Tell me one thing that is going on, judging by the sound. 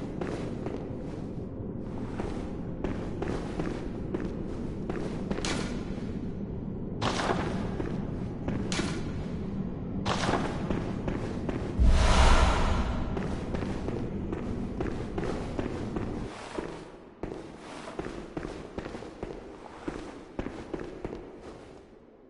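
Footsteps tread on stone in a large echoing hall.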